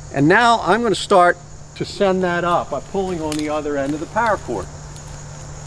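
A man speaks calmly and clearly, close by, outdoors.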